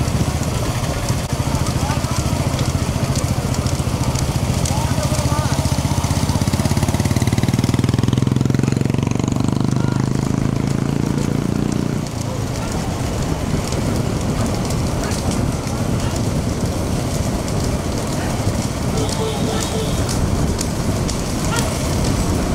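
Cart wheels rumble along the road.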